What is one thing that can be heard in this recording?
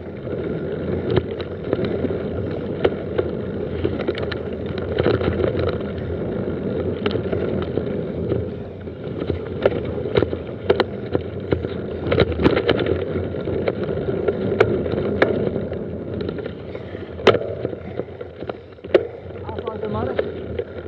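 Mountain bike tyres roll over dirt and dry leaves.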